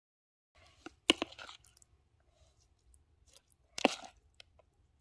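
A spoon scrapes and pushes a filling into a pepper.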